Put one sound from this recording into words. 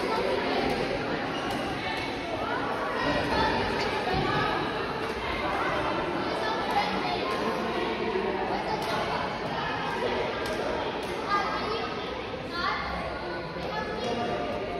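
Men talk and call out across the hall.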